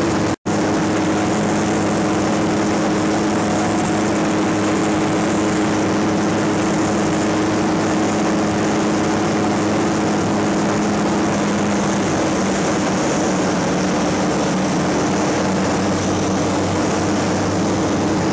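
A small plane's engine drones steadily.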